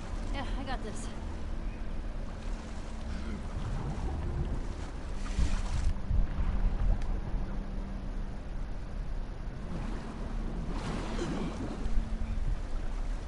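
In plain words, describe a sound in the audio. Water splashes as a person swims.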